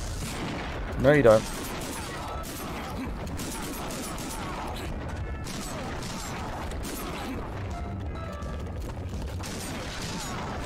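Magical blasts and zaps ring out in quick bursts.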